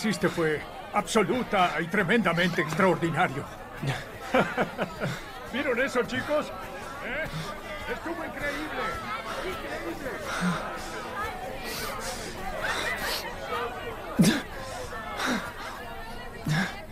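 A crowd murmurs outdoors in the distance.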